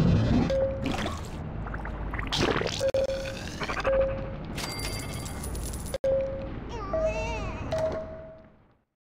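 Short electronic chimes ring out several times.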